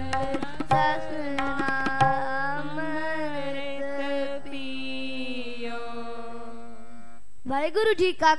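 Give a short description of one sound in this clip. A harmonium plays long held notes.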